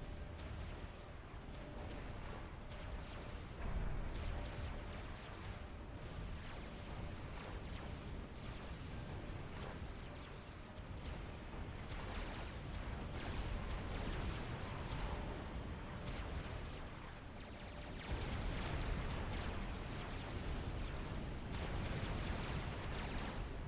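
Explosions and weapons fire from a game battle rumble and crack throughout.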